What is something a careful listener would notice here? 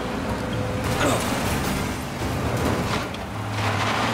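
A car crashes and rolls over with a loud metal crunch.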